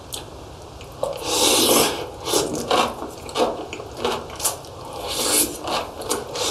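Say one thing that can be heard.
A young man slurps noodles loudly, close to the microphone.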